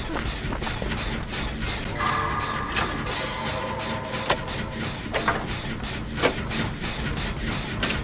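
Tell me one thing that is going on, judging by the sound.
A generator rattles and clanks as it is being repaired.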